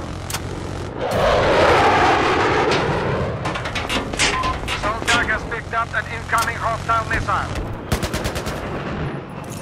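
Explosions rumble.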